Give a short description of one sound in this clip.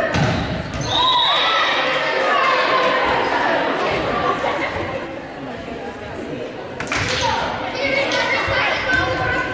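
Sneakers squeak on the gym floor.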